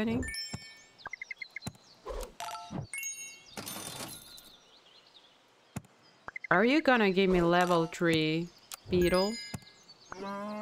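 Bright chiming game jingles ring out in short bursts.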